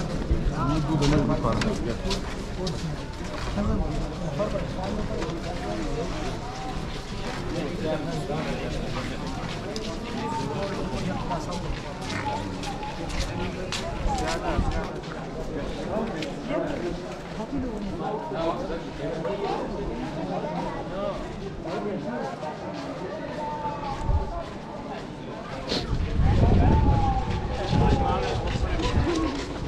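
Footsteps scuff on a paved street.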